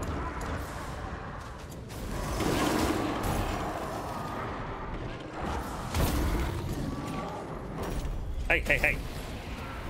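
Fire blasts and explosions roar in a video game.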